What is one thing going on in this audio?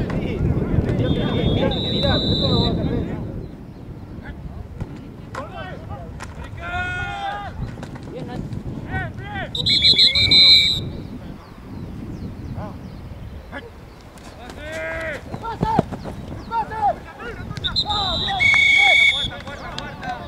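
A referee's whistle blows in short, sharp blasts.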